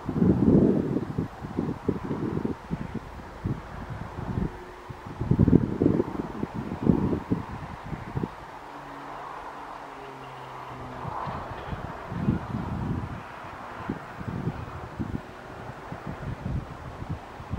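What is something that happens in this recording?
Wind gusts buffet loudly outdoors.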